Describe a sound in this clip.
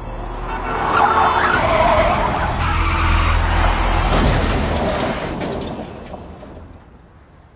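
A sports car's engine roars as it speeds past and fades away.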